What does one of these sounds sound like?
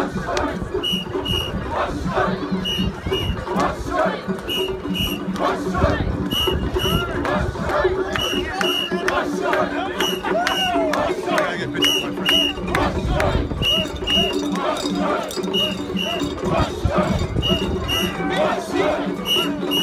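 A large group of men chant loudly in rhythm close by, outdoors.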